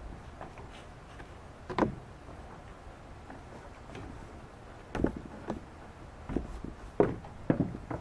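A boy climbs onto a wooden beam with soft thumps and creaks.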